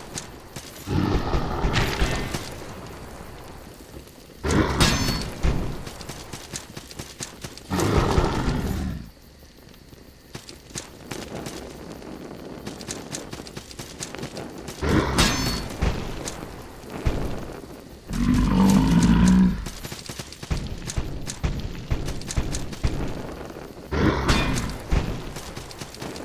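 A hulking monster slams the ground with heavy, booming thuds.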